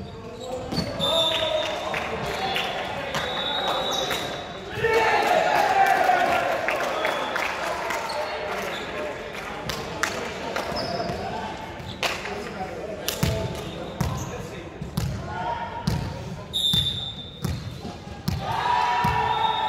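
Players shout and call out to each other across the court.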